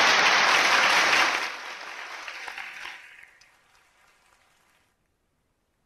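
An audience applauds in a large hall, then the applause fades.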